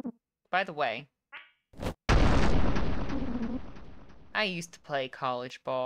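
A young woman talks with animation into a close microphone.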